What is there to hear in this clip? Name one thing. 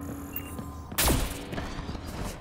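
A loud blast booms once.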